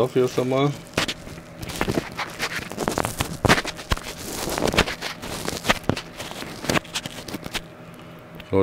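Small plastic parts click and rattle in a man's hands.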